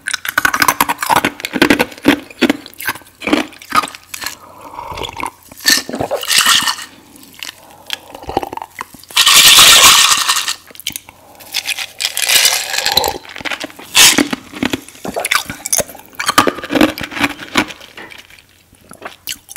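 A young woman crunches and chews ice close to a microphone.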